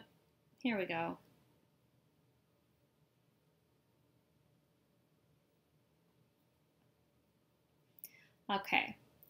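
A woman speaks briefly through a computer microphone.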